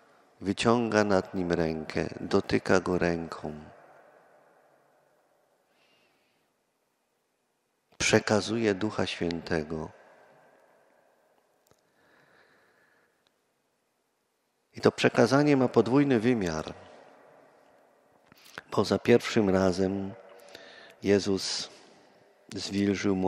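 A middle-aged man speaks calmly through a microphone, with pauses, in a large echoing hall.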